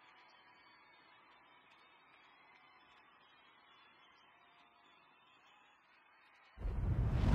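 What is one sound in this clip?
A large crowd cheers faintly far off.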